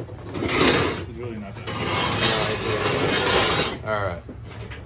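Wooden boards scrape and knock against each other close by.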